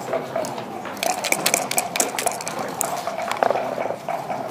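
Dice rattle in a cup and clatter onto the board.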